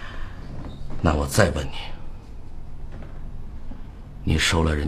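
A middle-aged man asks a question sharply.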